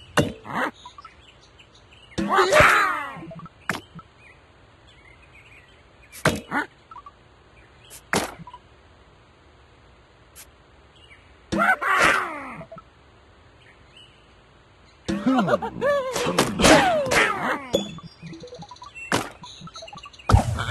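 Game pieces pop and chime as rows clear.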